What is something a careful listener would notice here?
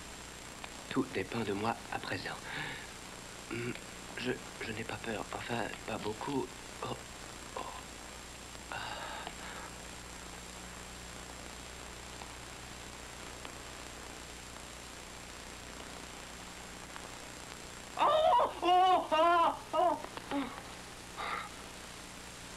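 A man speaks tensely and urgently nearby.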